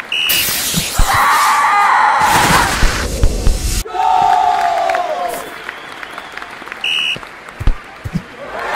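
A ball is kicked with a sharp thud.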